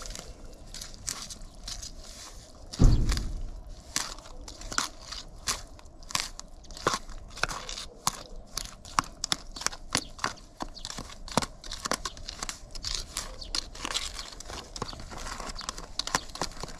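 A tool scrapes and taps against a plastic tub as thick paste is stirred.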